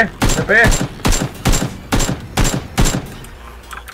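A rifle fires a rapid series of single, sharp shots.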